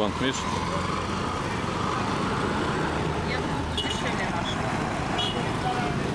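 A motorcycle engine buzzes past.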